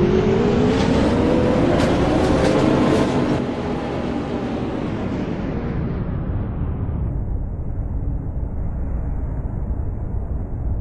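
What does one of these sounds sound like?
A bus engine hums and revs, then settles to a low rumble.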